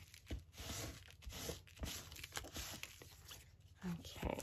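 Paper rustles and scrapes as it is folded and smoothed.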